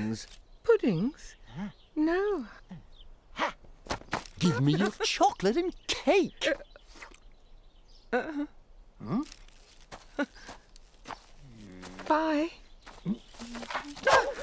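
A woman speaks gently in a cartoon voice.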